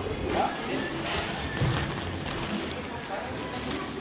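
Plastic bags rustle and crinkle.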